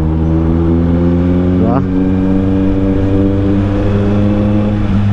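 A motorcycle engine drones steadily while riding.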